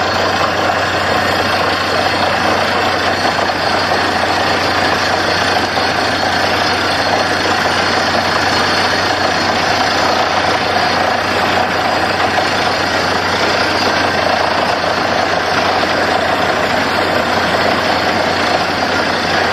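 A drill pipe grinds and churns into the ground.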